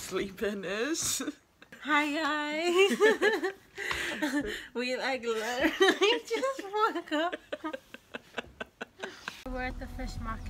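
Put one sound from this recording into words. A young woman talks cheerfully close to the microphone.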